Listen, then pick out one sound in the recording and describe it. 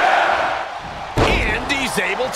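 A wrestler's body slams onto a ring mat with a heavy thud.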